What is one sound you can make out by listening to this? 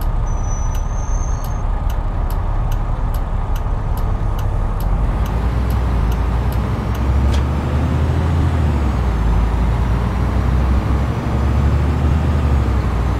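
A bus engine rumbles low and steadily as the bus drives along.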